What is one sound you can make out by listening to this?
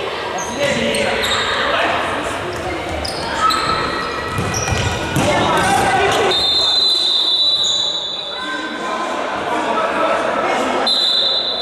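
A ball thuds as it is kicked on a hard floor.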